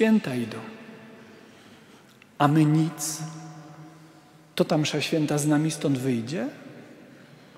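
A man chants slowly into a microphone in a large echoing hall.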